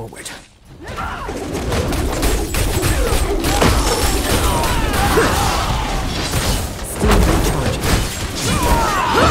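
Magic blasts crackle and boom in a fierce game battle.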